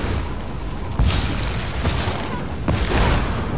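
Electric lightning crackles sharply.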